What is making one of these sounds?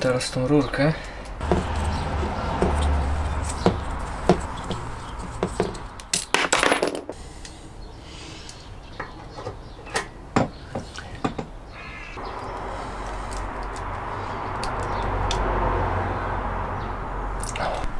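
Metal fittings click and clatter as they are handled.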